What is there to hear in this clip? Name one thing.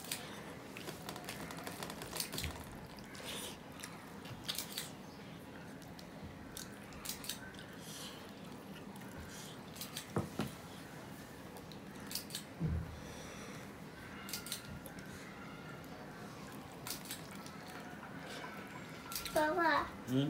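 A man squelches and mixes rice with his fingers.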